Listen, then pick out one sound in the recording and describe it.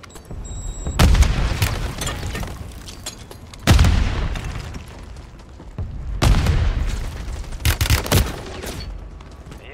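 Automatic gunfire rattles in loud, sharp bursts.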